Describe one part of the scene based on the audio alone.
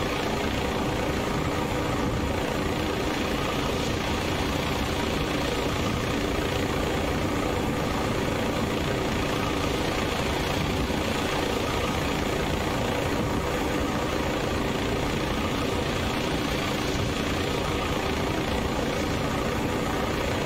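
A helicopter's rotor thumps and its engine roars steadily throughout.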